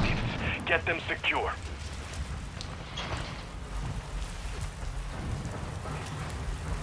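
Footsteps thud on a hard concrete floor.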